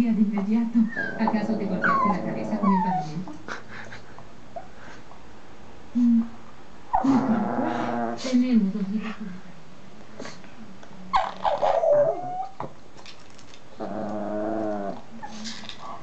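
A young woman laughs and talks with animation close by.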